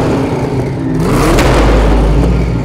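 A powerful car engine revs loudly, rising in pitch.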